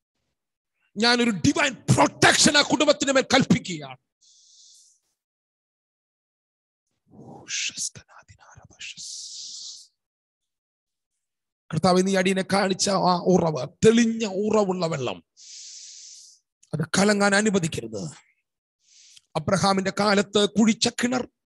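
A man speaks forcefully into a close microphone, in bursts with pauses between.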